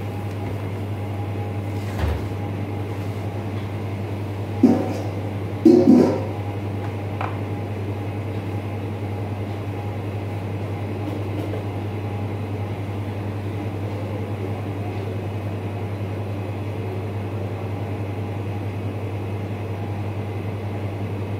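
An extractor fan hums steadily.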